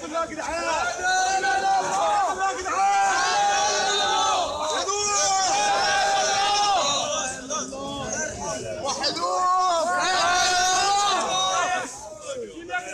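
A crowd of men chants loudly in unison outdoors.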